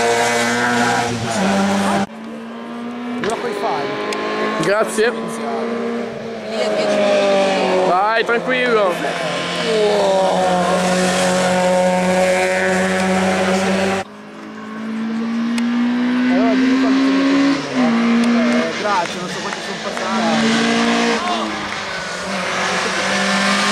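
A car engine revs hard and roars past at speed.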